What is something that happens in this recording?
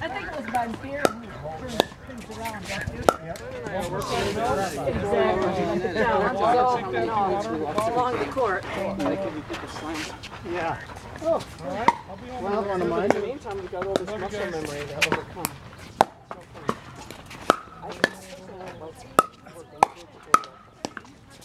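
Pickleball paddles hit a plastic ball with sharp hollow pops outdoors.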